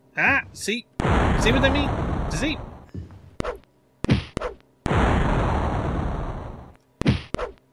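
Loud rushing blasts of magic burst out in short spells.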